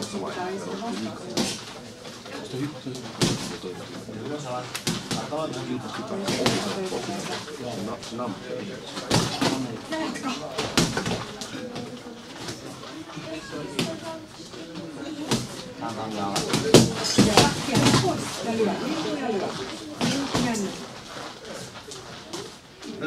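Shoes shuffle and squeak on a canvas ring floor.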